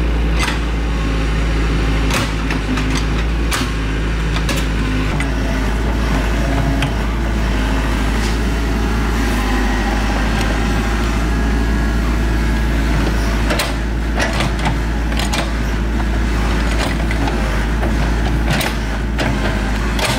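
An excavator bucket scrapes and knocks against dirt and stones.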